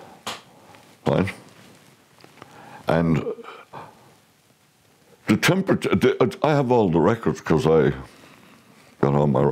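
An elderly man speaks close to a microphone, calmly and then with animation.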